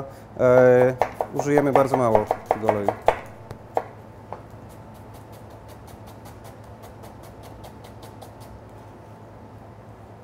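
A knife chops rapidly on a cutting board.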